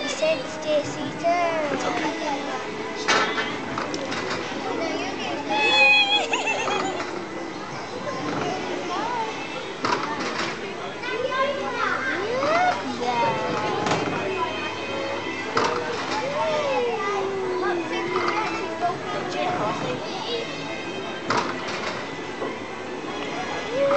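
A young woman talks warmly and playfully nearby.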